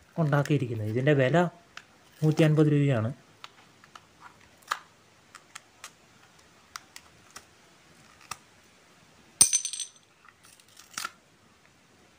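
A small screwdriver clicks and scrapes against hard plastic.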